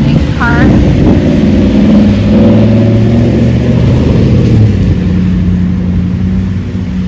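A pickup truck's engine rumbles as it drives by.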